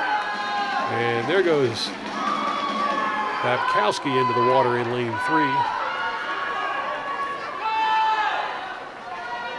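A crowd of spectators cheers and shouts loudly in a large echoing hall.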